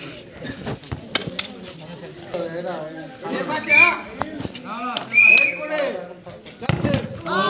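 A crowd of young men shouts and chatters loudly outdoors.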